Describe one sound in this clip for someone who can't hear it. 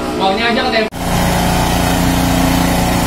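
A sprayer hisses as it sprays mist.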